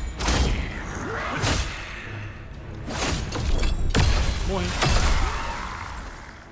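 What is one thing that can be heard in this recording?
Heavy blades clash and strike in a fast fight.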